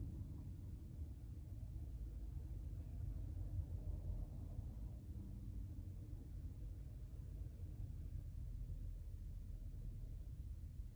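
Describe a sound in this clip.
A car rumbles low and steady as it drives, heard from inside.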